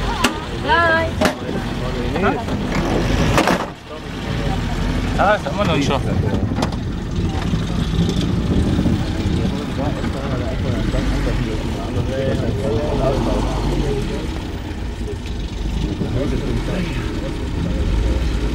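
A vehicle engine rumbles steadily from inside the vehicle.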